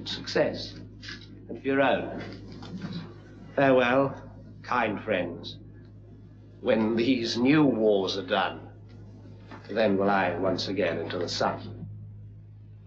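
A man speaks with animation in a stage voice, in a reverberant hall.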